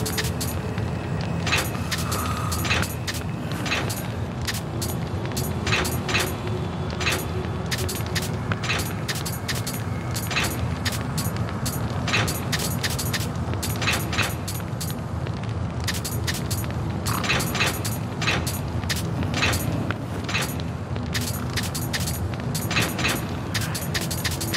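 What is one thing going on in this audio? Short menu ticks click quickly, one after another.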